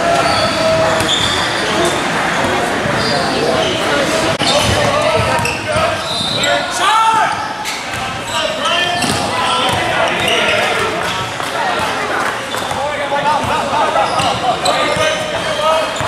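Boys shout to each other in a large echoing gym.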